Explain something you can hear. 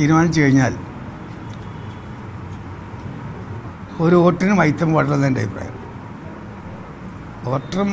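An elderly man speaks calmly into microphones close by, in short bursts with pauses.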